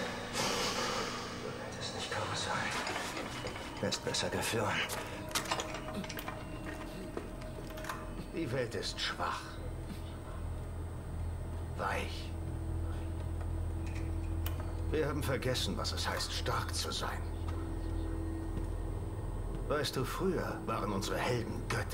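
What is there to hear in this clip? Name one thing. A man speaks slowly in a low, menacing voice, close by.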